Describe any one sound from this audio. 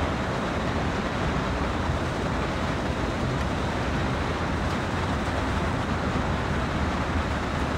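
A locomotive engine rumbles steadily as a train rolls along the rails.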